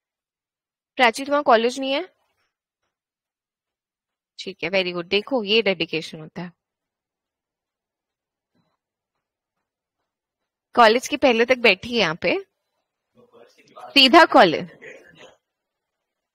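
A young woman speaks calmly and clearly through a microphone on an online call, pausing between phrases.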